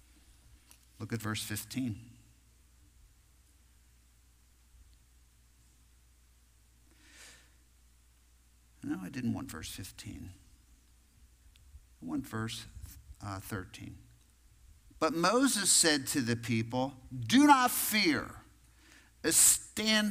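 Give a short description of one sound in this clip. A middle-aged man speaks calmly through a microphone in a large echoing room, with pauses.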